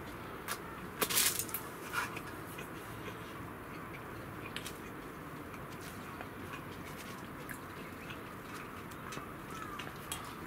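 Chopsticks click and scrape against a metal bowl.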